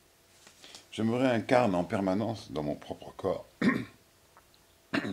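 An elderly man speaks calmly and thoughtfully close by.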